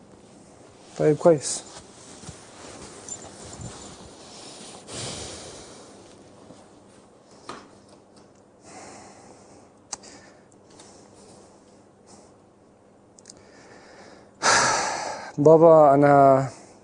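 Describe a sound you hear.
A young man speaks briefly nearby.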